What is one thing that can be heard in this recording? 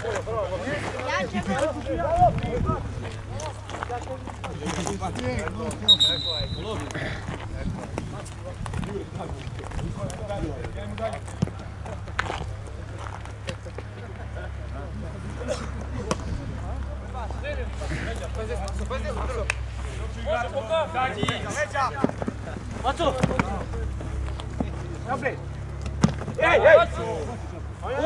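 Young men shout to each other from a distance outdoors.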